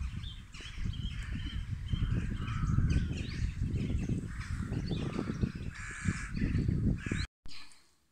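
A flock of birds calls overhead.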